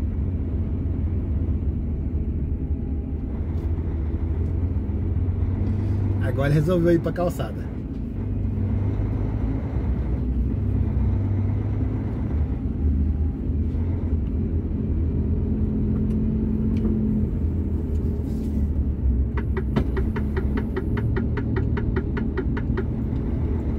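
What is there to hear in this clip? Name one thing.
A vehicle engine rumbles low and steady, heard from inside the vehicle.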